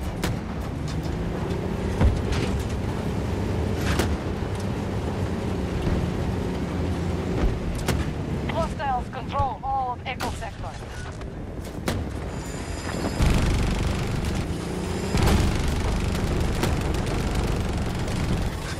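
A tank engine rumbles and its tracks clank steadily.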